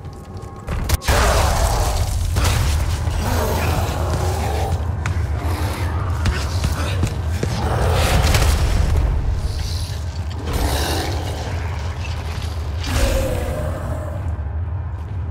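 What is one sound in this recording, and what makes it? Debris crashes and rumbles heavily.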